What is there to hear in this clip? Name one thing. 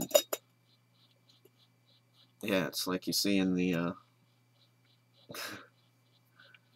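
Small objects click and rattle in a man's hands.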